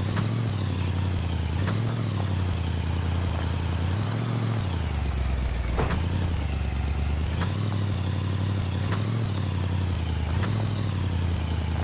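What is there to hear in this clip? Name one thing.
Tyres roll over sand and gravel.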